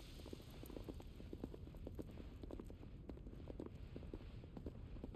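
Footsteps tap on a hard floor in a large echoing hall.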